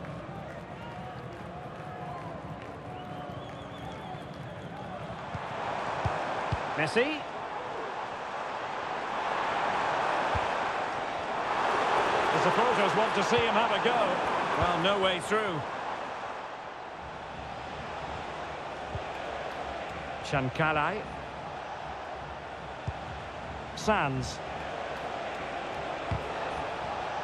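A stadium crowd roars and chants steadily, swelling at times.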